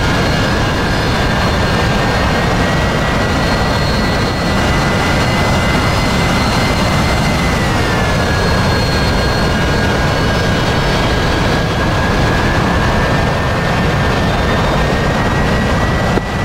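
A jet engine roars with a steady high whine that dips in pitch once.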